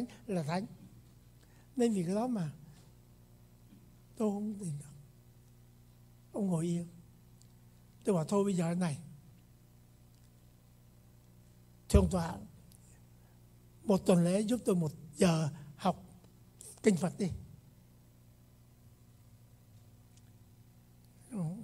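An elderly man speaks slowly into a microphone, in short phrases with pauses, in an echoing hall.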